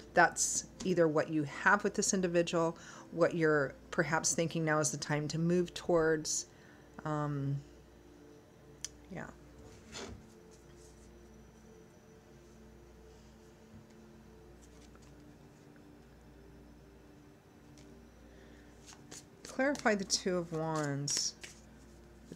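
A middle-aged woman speaks calmly and close into a microphone, with pauses.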